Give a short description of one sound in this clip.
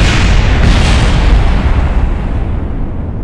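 A huge explosion booms loudly.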